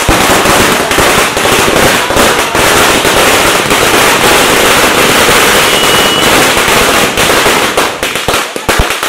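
Firecrackers burst and crackle loudly in a street.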